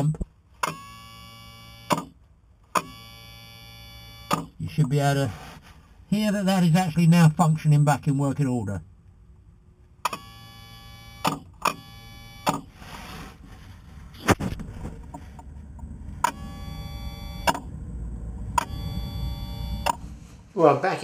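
An electric pump motor hums in short bursts, switching on and off.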